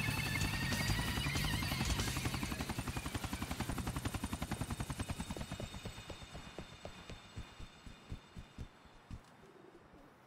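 A helicopter's rotor thumps rapidly, then slows and fades away.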